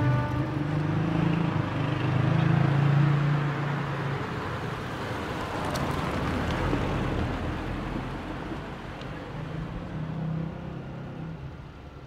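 A car engine hums as a car drives slowly closer and passes by.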